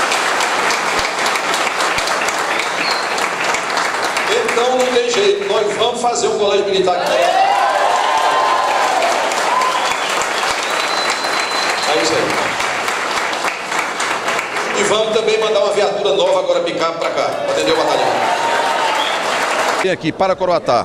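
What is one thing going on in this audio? A crowd claps in a large room.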